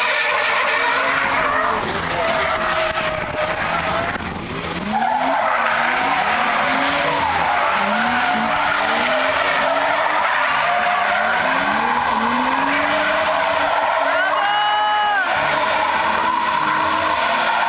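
Car engines rev hard and rise and fall in pitch.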